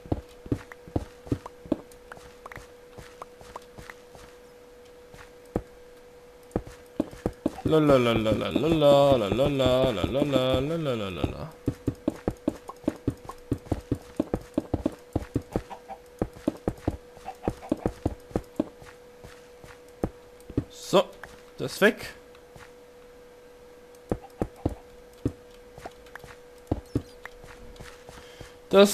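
Stone blocks knock softly as they are placed, one after another in quick succession.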